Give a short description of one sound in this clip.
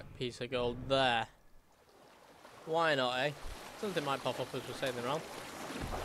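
Water splashes as a swimmer strokes.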